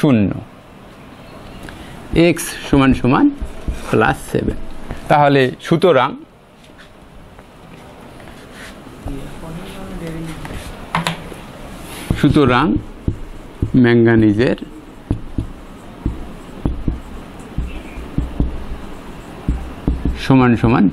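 A man explains calmly, speaking in short bursts.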